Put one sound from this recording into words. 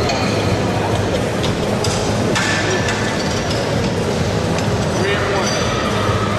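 Heavy metal weight plates clank onto a barbell.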